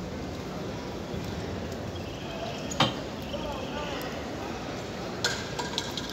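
Water trickles from a tap into a plastic cup.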